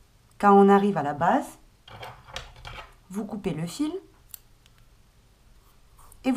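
Yarn rustles softly as a crochet hook pulls it through stitches.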